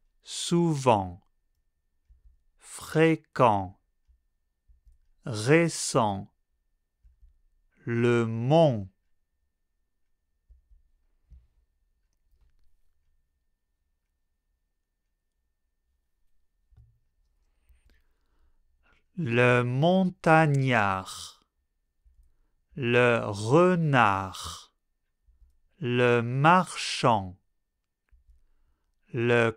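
A man speaks clearly and slowly into a close microphone, pausing between short words.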